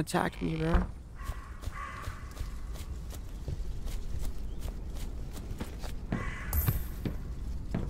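Footsteps swish through grass at a steady pace.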